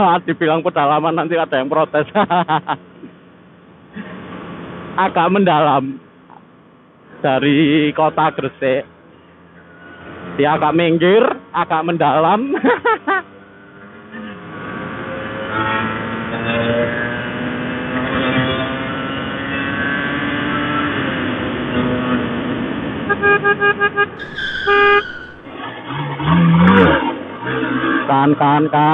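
A motorcycle engine revs up and down as it rides.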